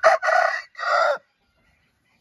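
A rooster crows loudly close by.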